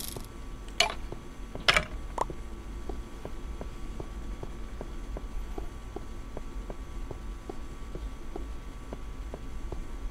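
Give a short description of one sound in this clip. Footsteps tap steadily on stone in a quick, even rhythm.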